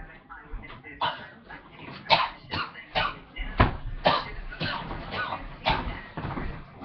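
A body tumbles and thuds onto a mattress.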